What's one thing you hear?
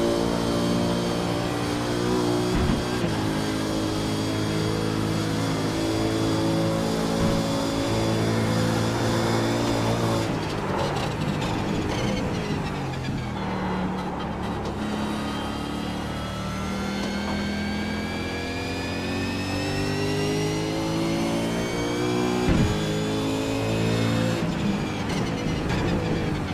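A racing car engine roars loudly, rising and falling in pitch as it shifts gears and slows for corners.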